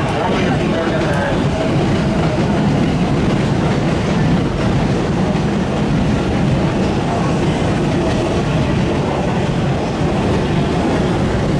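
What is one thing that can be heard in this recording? A train rumbles loudly past at speed, its wheels clattering on the rails.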